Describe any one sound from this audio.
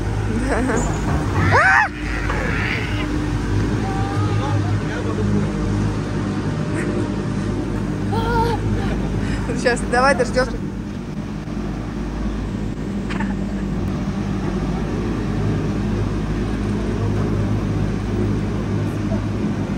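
A chairlift's machinery hums steadily.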